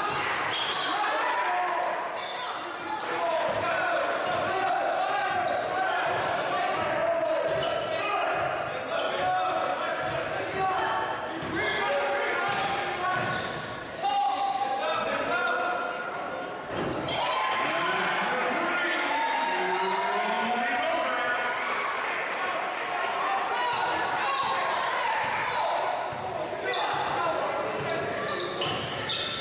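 A crowd cheers and chatters in a large echoing gym.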